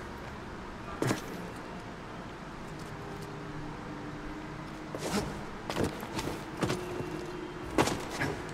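Footsteps thud and scrape on stone.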